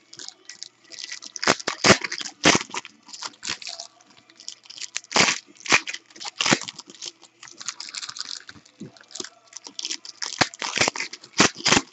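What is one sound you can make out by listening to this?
Plastic wrappers crinkle and rustle as they are torn open.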